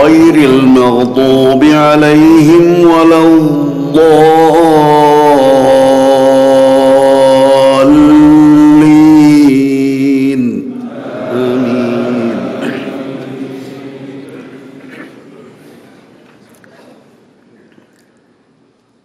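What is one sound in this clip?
A man chants in a long, drawn-out voice over loudspeakers, echoing through a large hall and slowly fading away.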